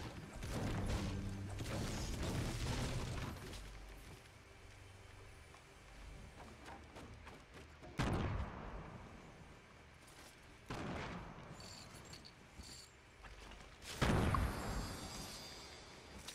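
A pickaxe strikes objects and smashes them with loud crunching thuds.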